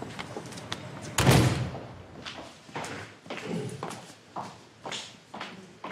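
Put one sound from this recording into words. Footsteps walk along a hard floor.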